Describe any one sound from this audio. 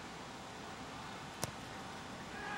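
A soccer ball is kicked once with a dull thump.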